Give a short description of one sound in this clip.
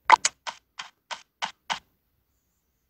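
Short arcade game sound effects pop in a quick run.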